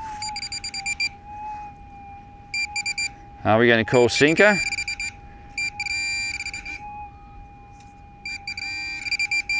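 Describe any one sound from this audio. A metal detector hums a steady high tone.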